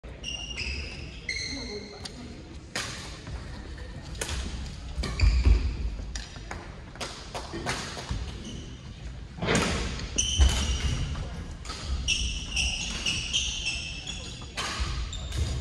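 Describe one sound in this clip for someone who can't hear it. Shuttlecocks are struck with sharp pops of rackets in a large echoing hall.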